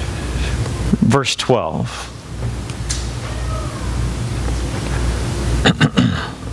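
A man speaks calmly through a microphone in an echoing hall.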